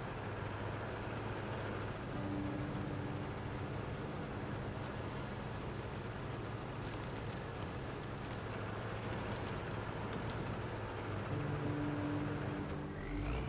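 Snow and rocks crunch under the truck's tyres.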